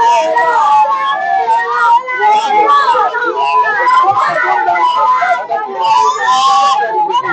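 Children shout and sing excitedly together, close by, outdoors.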